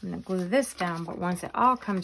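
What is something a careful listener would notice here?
Pages flap as they are flipped.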